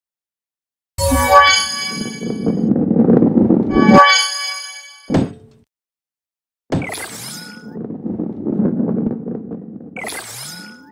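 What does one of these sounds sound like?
A ball rolls and rumbles along a wooden track.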